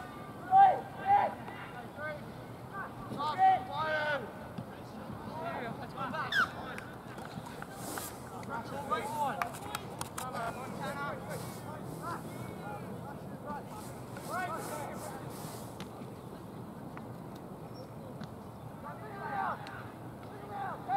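Spectators cheer and call out from the sideline.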